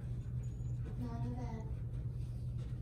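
A woman speaks briefly to a dog.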